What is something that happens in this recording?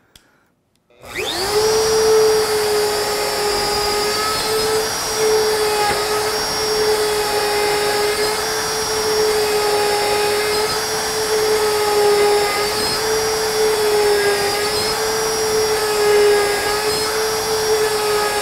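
A router motor starts up and whines steadily at high speed.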